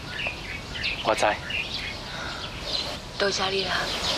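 A young man answers calmly close by.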